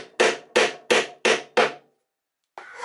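A wooden mallet knocks sharply on wood several times.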